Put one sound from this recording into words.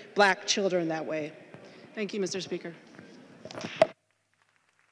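A middle-aged woman speaks earnestly into a microphone.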